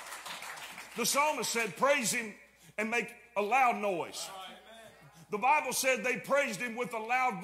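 A man preaches loudly and with fervour through a microphone.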